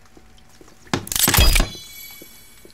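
A heavy log drops to the ground with a loud thud.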